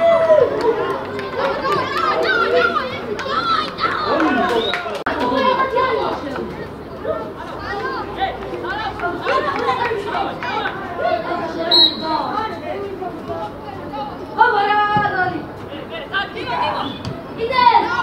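Young male players shout to each other across an open pitch.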